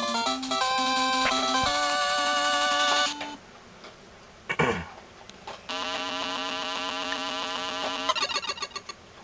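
Chiptune video game music plays with bright beeping melodies.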